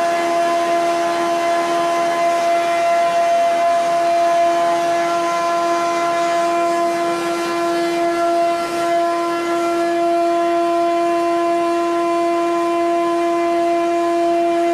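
Heavy machinery hums and whines steadily with a loud droning tone.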